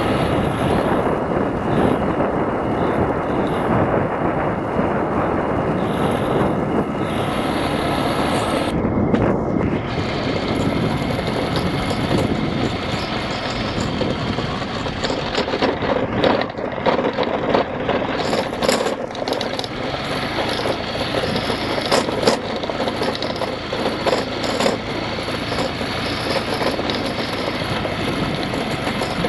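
Wind buffets the microphone.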